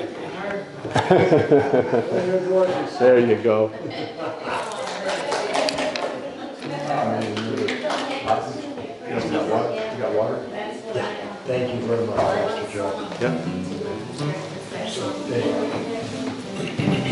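An elderly man speaks into a microphone over loudspeakers in an echoing hall.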